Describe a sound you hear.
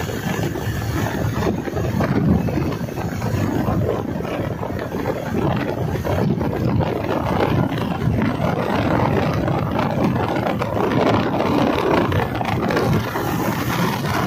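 Wind buffets a microphone on a moving motorcycle.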